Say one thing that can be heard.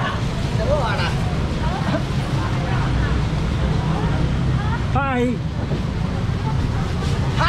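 Men and women chatter nearby, outdoors in a busy crowd.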